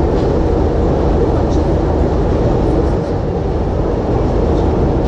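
A train rumbles steadily across a steel bridge.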